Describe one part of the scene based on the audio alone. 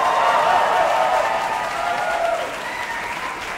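An orchestra plays in a large, echoing hall and then fades.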